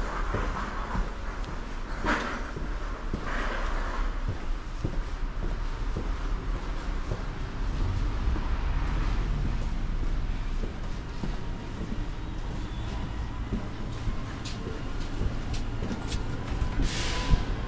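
Footsteps scuff along a hard floor.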